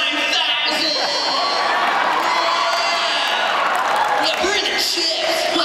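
A young man sings loudly through a microphone over loudspeakers in a large echoing hall.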